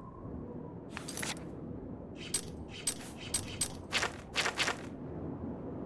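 Menu clicks and page flips sound in quick succession.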